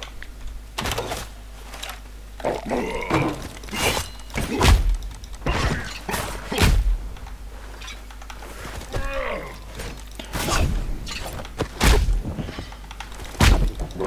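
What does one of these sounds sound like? Sharp blows and blade strikes land in a scuffle, over and over.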